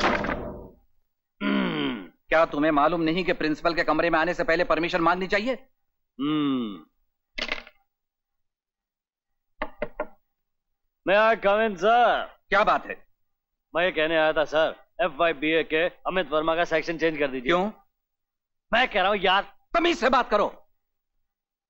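A man speaks forcefully up close.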